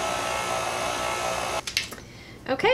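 An electric stand mixer whirs briefly.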